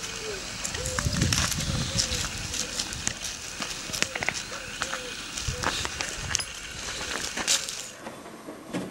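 A dog's paws scuff and scrape on gravel.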